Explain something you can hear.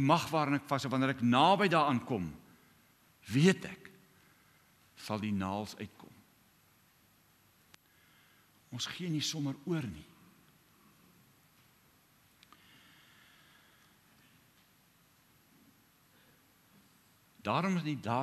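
A middle-aged man speaks with animation through a microphone in an echoing hall, pausing often.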